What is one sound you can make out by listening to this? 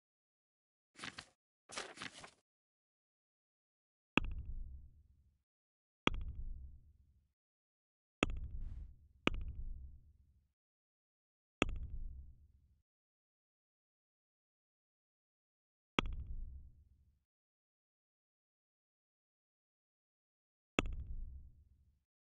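A menu page flips with a short, deep thump each time.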